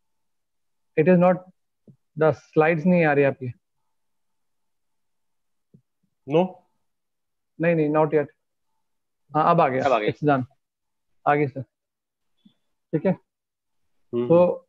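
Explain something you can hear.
A man speaks calmly over an online call, in short bursts.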